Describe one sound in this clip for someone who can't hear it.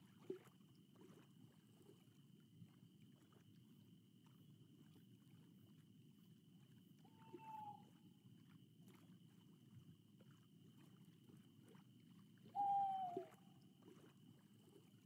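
Water laps gently against the side of a boat.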